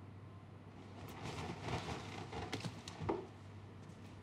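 Bed sheets rustle as they are moved.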